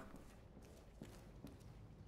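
Footsteps fall softly on a wooden floor.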